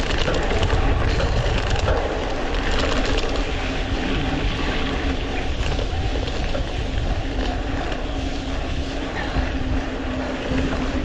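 Bicycle tyres crunch and rattle over a dirt road.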